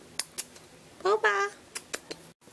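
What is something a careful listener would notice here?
A cat meows loudly close by, twice in quick succession.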